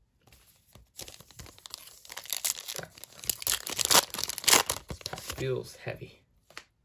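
A foil wrapper crinkles and tears open.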